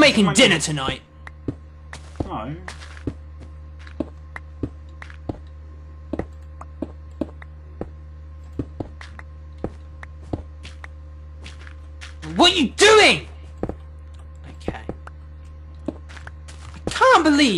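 Short repeated clicks sound as blocks are broken in a game.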